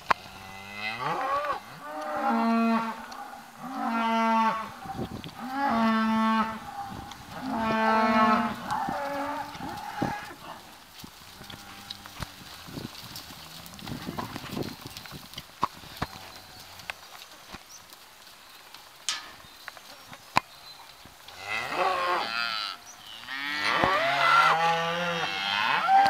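Cattle moo loudly and repeatedly close by.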